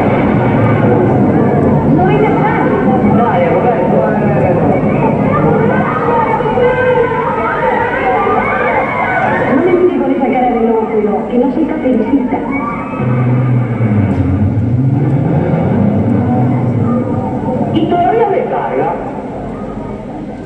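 An orchestra plays in a large echoing hall.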